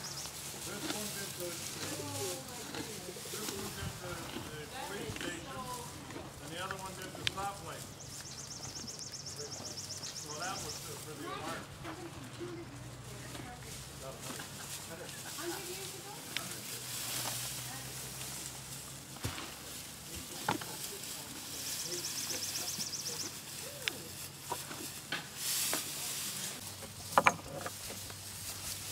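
Dry hay rustles as donkeys nose through it.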